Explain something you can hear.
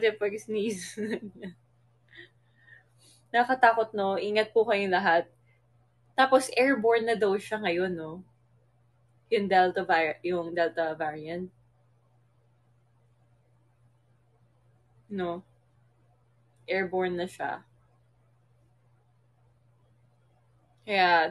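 A young woman talks casually and close to a phone's microphone, with pauses.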